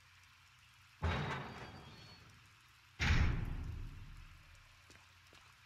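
Heavy metal doors grind open and boom with a long echo.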